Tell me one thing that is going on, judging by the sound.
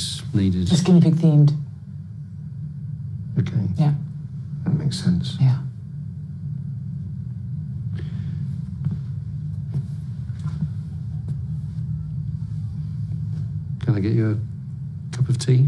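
A man speaks calmly nearby, in short bursts.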